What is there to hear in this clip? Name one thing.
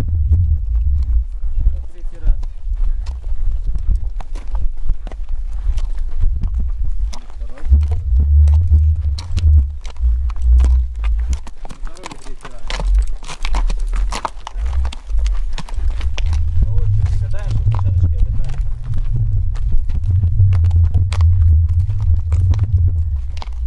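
Footsteps crunch on gravel nearby.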